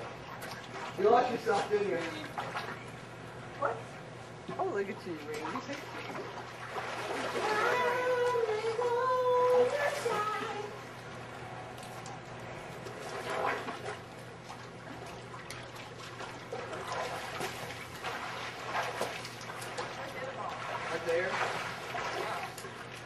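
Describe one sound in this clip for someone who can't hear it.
Children shout and call out nearby, outdoors.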